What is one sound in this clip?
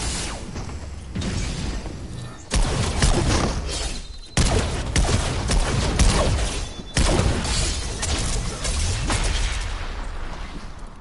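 Gunshots and explosions from a video game ring out in quick bursts.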